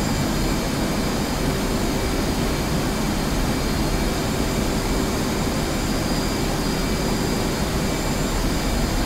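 A jet engine roars steadily inside a cockpit.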